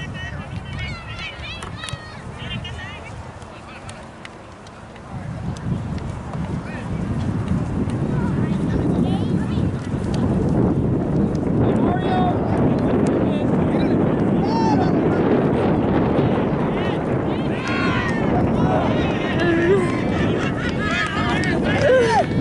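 Wind blows across an open outdoor field.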